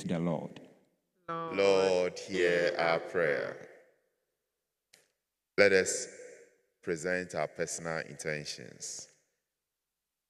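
A young man speaks calmly into a microphone, heard through a loudspeaker in an echoing hall.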